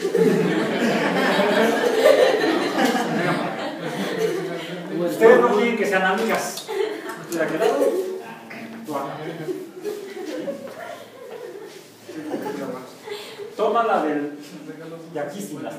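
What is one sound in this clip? Young women talk and laugh close by.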